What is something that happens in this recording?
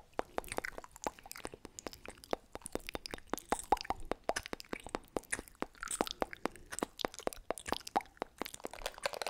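A young woman whispers close to a microphone.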